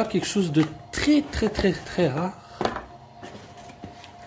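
Cardboard flaps rustle and scrape.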